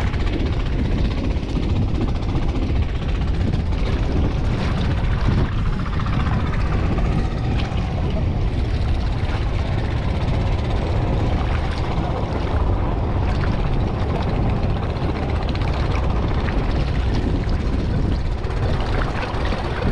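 Water sloshes around legs wading through shallow water.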